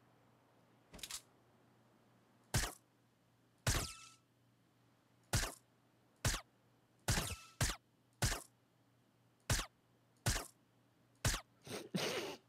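Single gunshots ring out one at a time, with short pauses between them.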